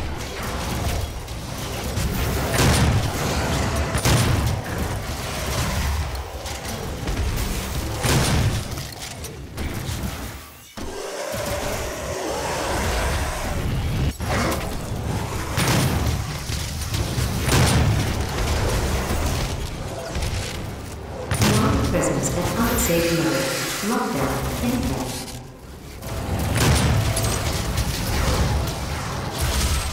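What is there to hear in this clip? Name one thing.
Guns fire in loud, rapid bursts.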